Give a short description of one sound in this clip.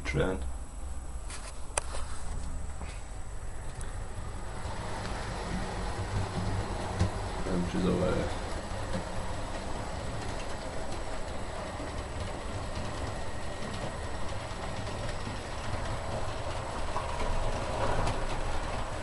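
A model train hums and rattles steadily along its tracks.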